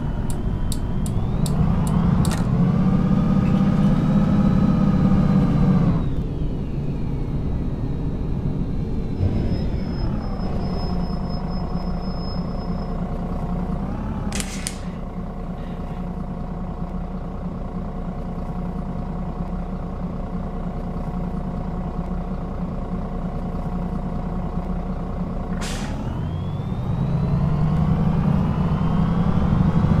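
A bus engine whines and rises in pitch as the bus speeds up, then falls as it slows.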